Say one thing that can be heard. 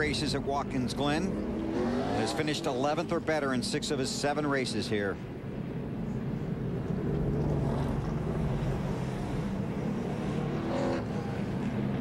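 Race car engines roar loudly as the cars speed past.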